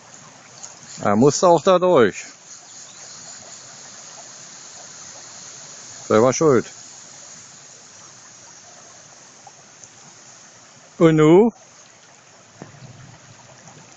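Floodwater flows steadily across a road outdoors.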